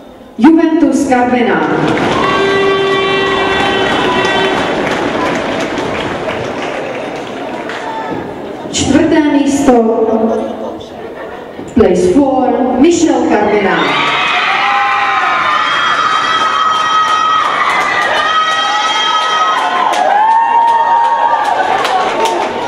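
A crowd of girls cheers and claps loudly.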